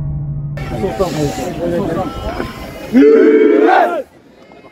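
A group of young men shout together in a huddle outdoors.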